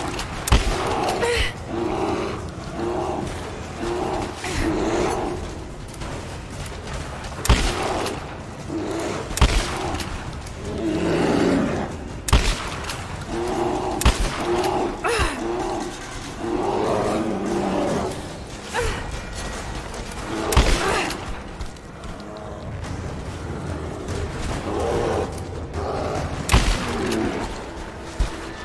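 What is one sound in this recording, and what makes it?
A bear growls and roars.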